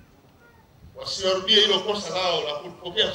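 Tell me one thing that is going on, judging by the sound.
A man speaks forcefully into a microphone through loudspeakers.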